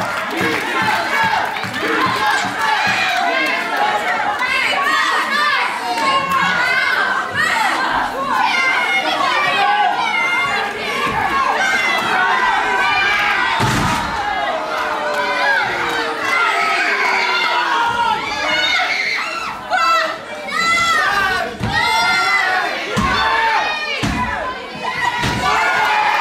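A crowd of spectators chatters and shouts.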